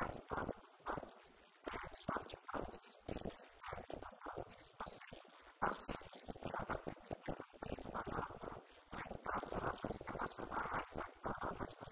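A man speaks with animation into a microphone in a room with a slight echo.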